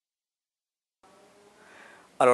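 A middle-aged man speaks calmly into a microphone, close by.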